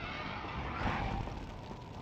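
Footsteps thud on stone.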